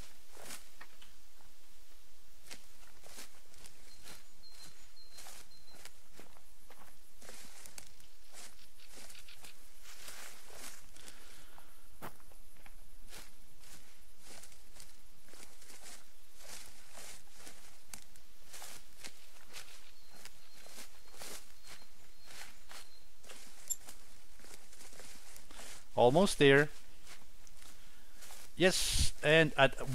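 Footsteps crunch steadily through dry leaves.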